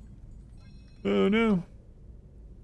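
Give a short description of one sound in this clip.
A young man makes a short, drawn-out vocal sound close to a microphone.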